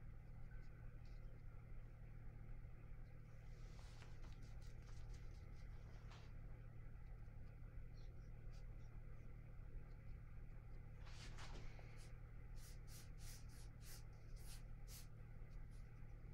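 A brush swishes softly across wet paper.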